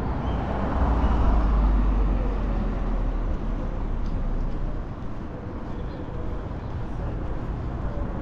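A car drives off down the street and fades.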